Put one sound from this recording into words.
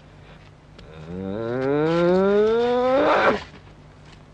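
A young boy lets out a long, rising wail.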